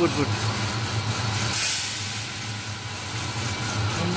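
Coffee beans rattle as they pour from a bucket into a metal hopper.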